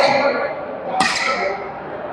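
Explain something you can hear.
A badminton racket smacks a shuttlecock in an echoing hall.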